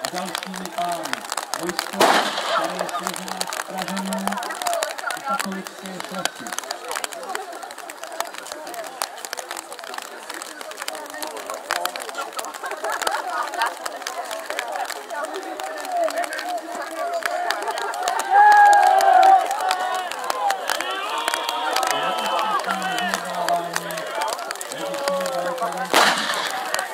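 A crowd of men talk and call out outdoors.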